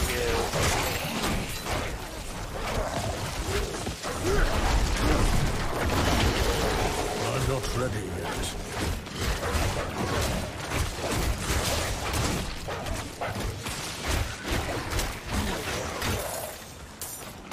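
Weapons strike and bones shatter in quick, repeated hits.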